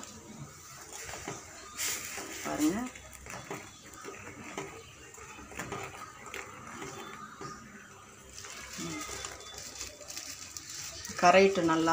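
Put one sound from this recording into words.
A metal spoon scrapes and clinks against a metal pot.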